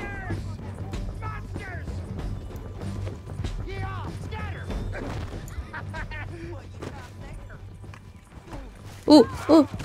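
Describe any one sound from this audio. Horse hooves thud quickly on a dirt trail.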